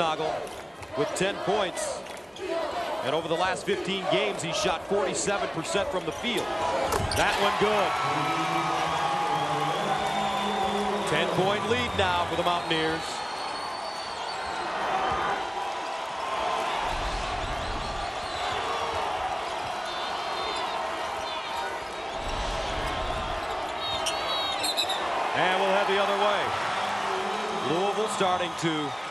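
A crowd cheers and murmurs in a large echoing arena.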